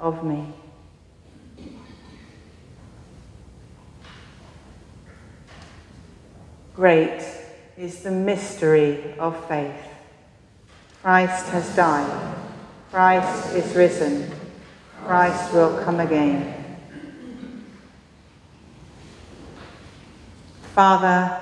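A woman chants through a microphone in a large echoing hall.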